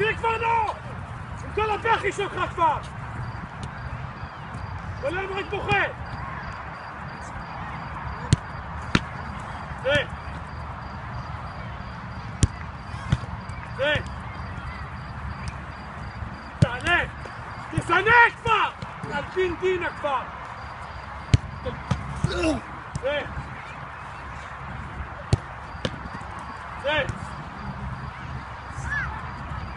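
Men shout and call out across an open outdoor pitch.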